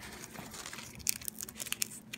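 Peanut shells crack and crunch between fingers.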